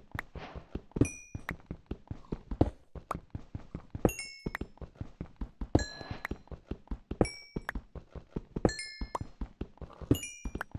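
Small items pop up with short high blips.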